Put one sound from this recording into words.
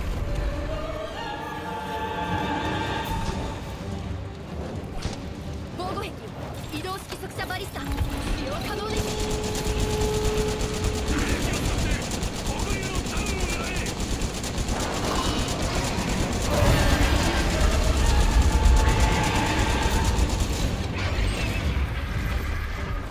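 A deep rumble fills the air.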